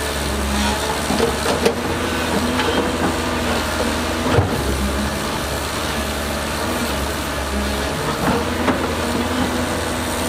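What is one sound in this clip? A diesel engine rumbles steadily nearby.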